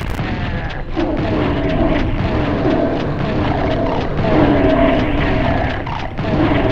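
A monster growls and snarls up close.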